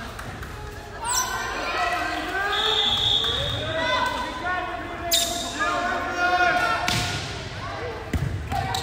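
Young women on a team chant and cheer loudly in a large echoing gym.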